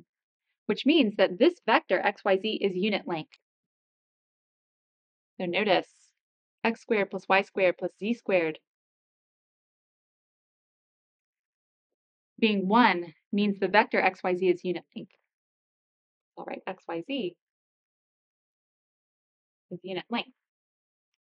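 A woman speaks calmly and clearly into a close microphone, pausing between phrases.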